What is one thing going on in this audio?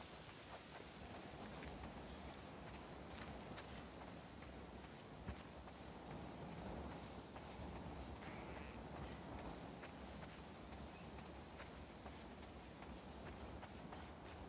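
Footsteps run through dry grass.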